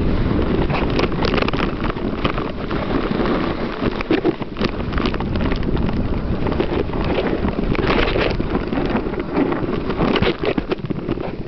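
A waterfall splashes and rushes steadily nearby.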